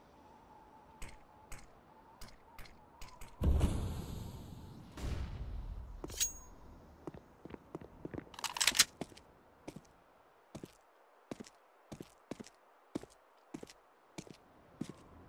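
Footsteps tap quickly and evenly on a hard floor.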